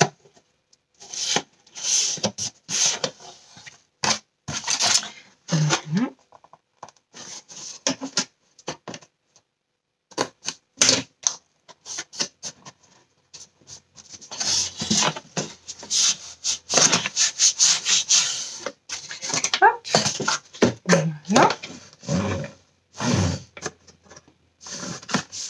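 Cardboard rustles and scrapes as hands handle and press a box.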